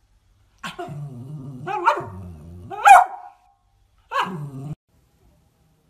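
A small dog barks and growls playfully, close by.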